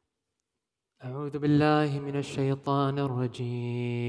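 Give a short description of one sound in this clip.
A young man chants loudly and melodiously into a microphone.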